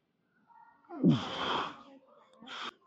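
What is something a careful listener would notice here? A man breathes out sharply and forcefully close by.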